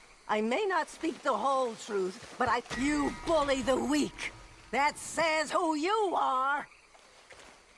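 A woman speaks in a pleading, emotional voice close by.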